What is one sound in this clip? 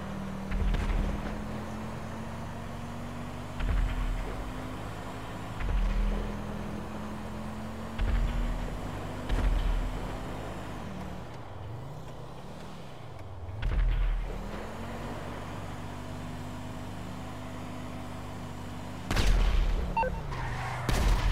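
A car engine hums steadily, rising and falling in pitch as it shifts gears.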